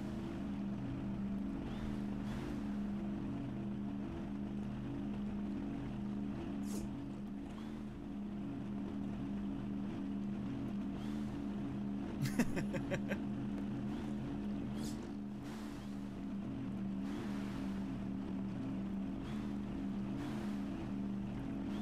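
An engine drones steadily.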